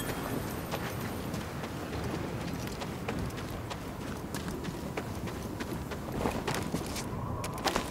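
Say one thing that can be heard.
Footsteps run quickly over snow and rock.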